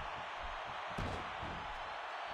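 A body thuds onto a wrestling ring.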